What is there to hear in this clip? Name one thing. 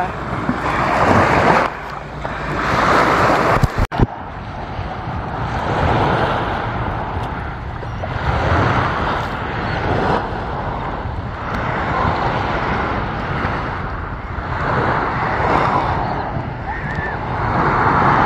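Small waves lap at the shore.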